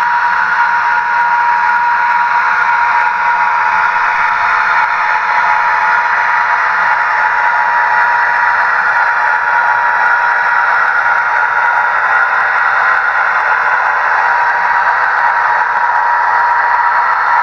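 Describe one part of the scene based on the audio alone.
A model train rolls slowly along its track with a steady whirring hum.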